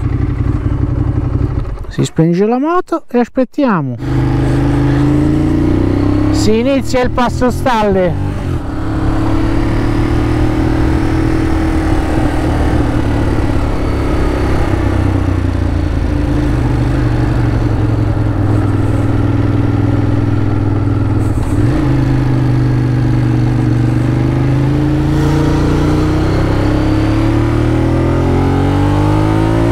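A motorcycle engine hums steadily close by, rising and falling in pitch.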